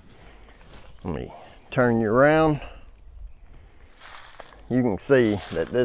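A middle-aged man talks calmly and close to a clip-on microphone, outdoors.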